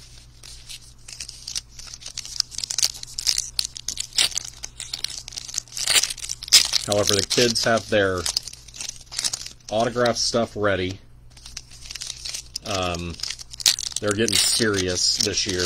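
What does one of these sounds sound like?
Foil card packs crinkle and tear open.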